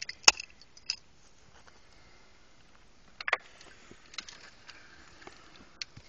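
Hands scrape and crumble dry soil close by.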